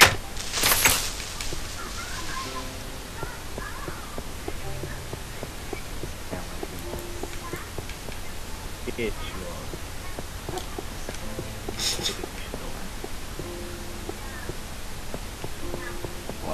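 Footsteps tap on hard stone at a steady walking pace.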